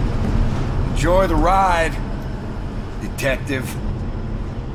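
A second man speaks.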